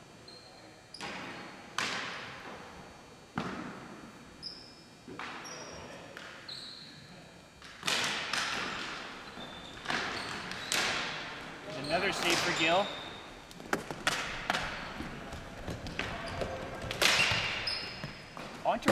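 Hockey sticks clack and knock in a large echoing hall.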